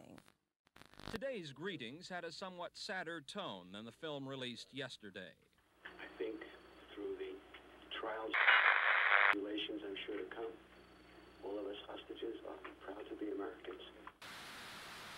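A man talks with animation through a television speaker.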